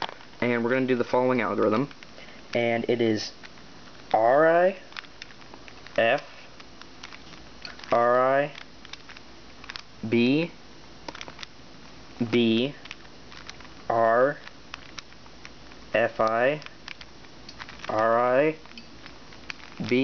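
Plastic cube pieces click and clack as hands twist them.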